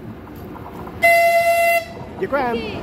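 A locomotive horn sounds a short loud blast.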